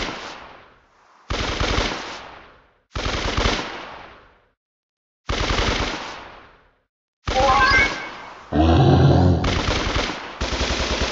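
A game character fires a weapon in sharp bursts.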